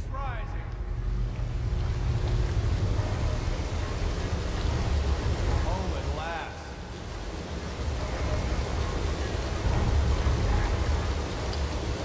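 Water rushes and churns loudly.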